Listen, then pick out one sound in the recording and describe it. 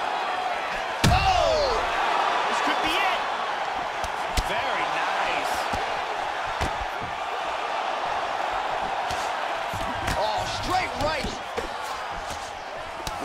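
Fists thump against bodies in sharp blows.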